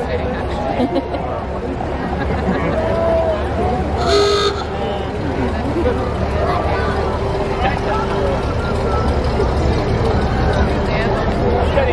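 An old truck engine rumbles slowly past.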